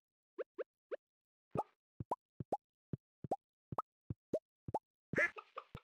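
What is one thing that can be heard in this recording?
Quick soft popping blips repeat one after another as hay is dropped into place.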